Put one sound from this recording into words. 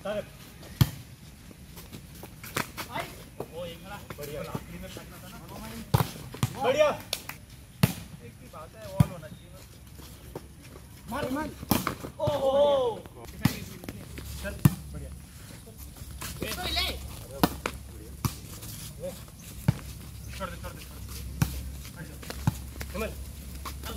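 Young men shout and call out outdoors during a game.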